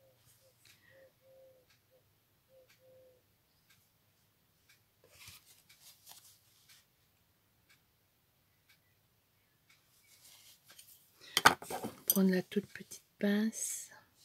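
A metal tool scrapes lightly on paper.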